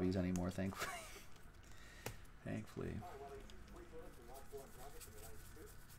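Trading cards rustle and flick as hands shuffle them.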